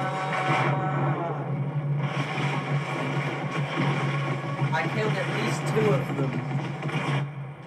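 Explosions boom and crackle loudly, played through a speaker.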